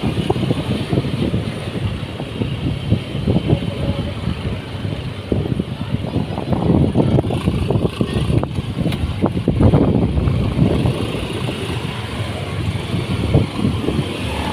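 A motorcycle engine hums steadily nearby as it rides along.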